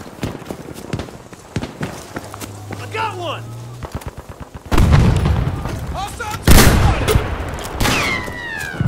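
Gunshots crack in quick bursts nearby.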